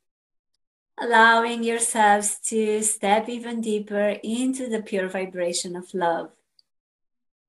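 A young woman speaks calmly and softly over an online call.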